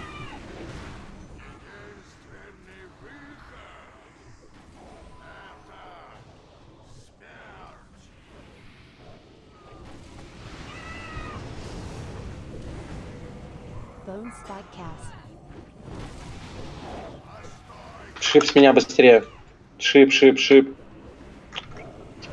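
Magical spell effects whoosh and crackle in a video game battle.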